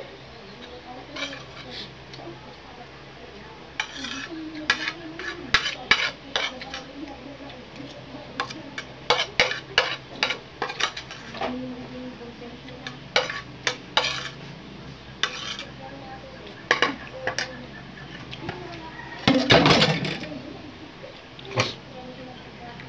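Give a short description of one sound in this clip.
A metal spoon clinks and scrapes against a plate.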